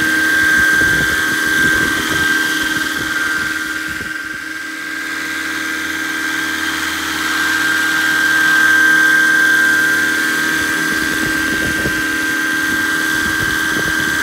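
A helicopter's engine whines steadily overhead.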